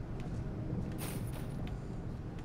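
A heavy bag drops onto the floor with a thud.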